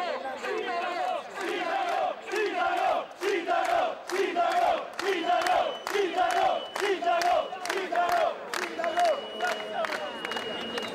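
A man shouts rhythmically through a megaphone.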